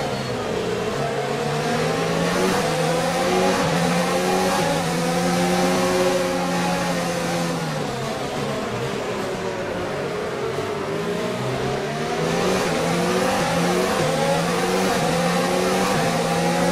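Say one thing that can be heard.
A racing car engine screams at high revs, rising through the gears and dropping as it brakes.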